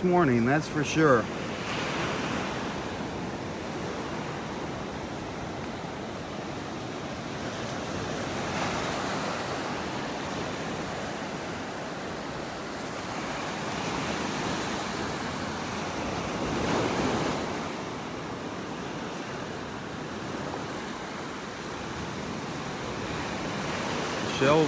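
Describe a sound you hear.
Small waves wash gently onto a beach, outdoors.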